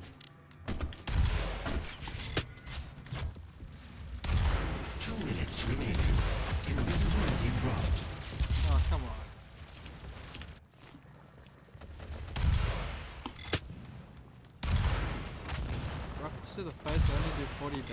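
Gunfire and explosions boom from a game.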